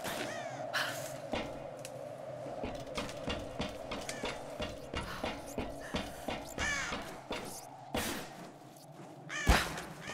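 Footsteps clank on a metal pipe.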